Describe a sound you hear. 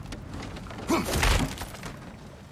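A heavy wooden chest bursts open.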